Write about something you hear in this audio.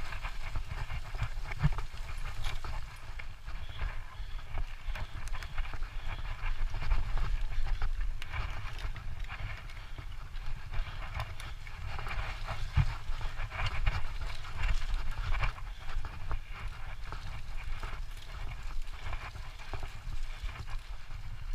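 Bicycle tyres roll and crunch over dirt and dry leaves.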